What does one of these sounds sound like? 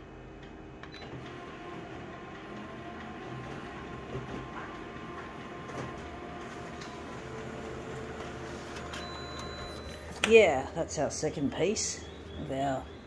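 A copier hums and whirs steadily as it prints.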